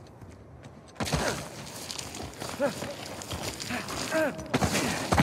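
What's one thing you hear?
Loose gravel scrapes and rumbles as a man slides down a rocky slope.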